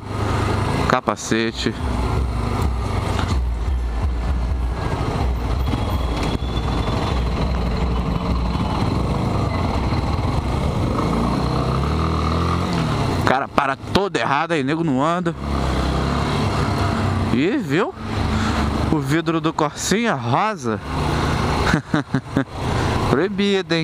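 A motorcycle engine hums and revs steadily up close.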